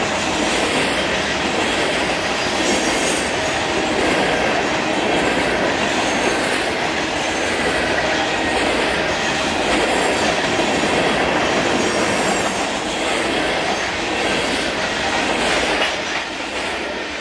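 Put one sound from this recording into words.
Steel wheels clatter over rail joints as the freight cars pass.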